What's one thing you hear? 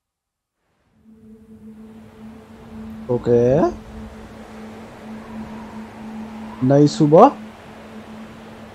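Gentle sea waves lap and wash.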